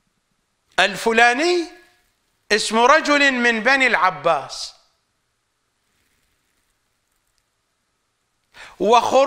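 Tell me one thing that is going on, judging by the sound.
An older man speaks calmly and expressively into a close microphone.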